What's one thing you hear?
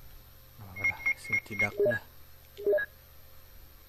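Electronic menu beeps chirp in quick succession.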